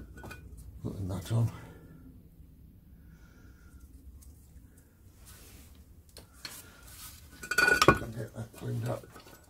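Metal parts clank and scrape.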